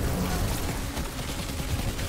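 A fiery explosion bursts.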